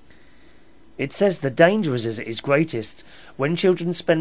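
A man speaks calmly and closely into a microphone, reading out.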